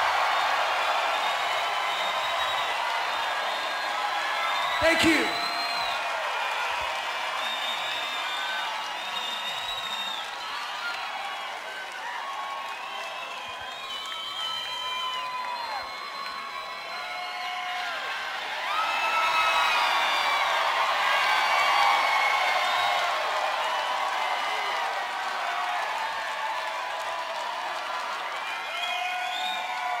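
A large crowd cheers and whistles loudly in a big echoing hall.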